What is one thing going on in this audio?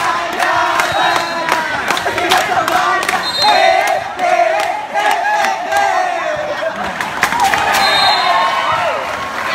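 Young people shout and cheer loudly outdoors.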